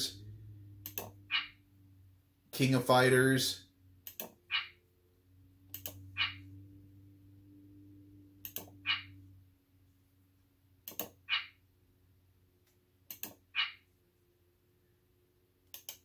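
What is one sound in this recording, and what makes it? Short electronic beeps sound as a menu cursor steps through a list.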